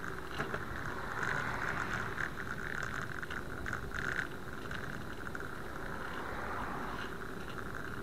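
A car approaches and swishes past.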